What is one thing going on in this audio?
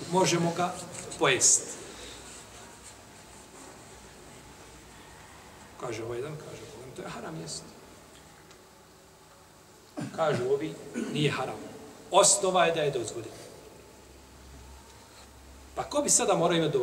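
A middle-aged man speaks calmly into a nearby microphone, in short bursts with pauses.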